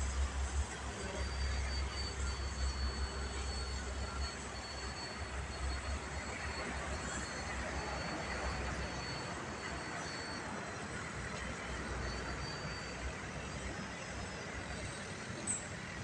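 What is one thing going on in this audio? A small model plane's motor whines high overhead.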